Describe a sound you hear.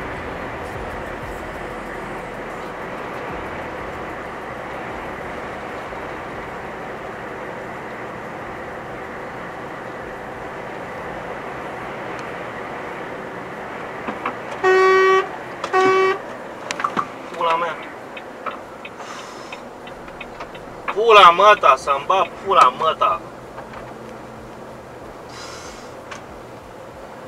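A truck engine hums steadily as tyres roll over the road.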